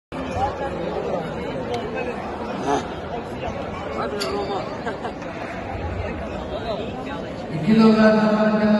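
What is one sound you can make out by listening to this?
People talk in a low murmur in a large echoing hall.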